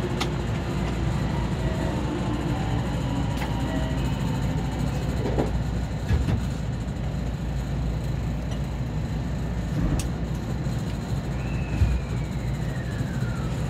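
A stopped train hums with a low, steady drone.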